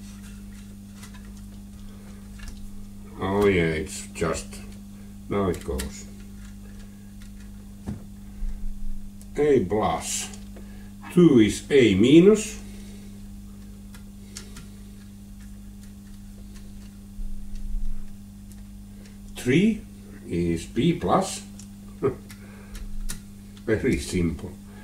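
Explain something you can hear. A small screwdriver scrapes and clicks against screw terminals.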